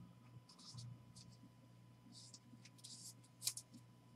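Stiff plastic card holders rustle and scrape between fingers.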